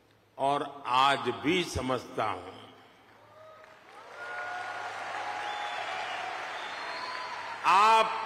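An elderly man speaks with emphasis into a microphone, his voice carried through loudspeakers in a large hall.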